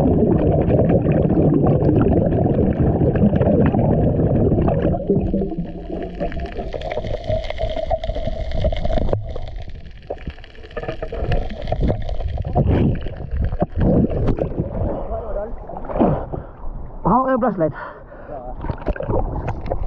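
Air bubbles gurgle and rush close by underwater.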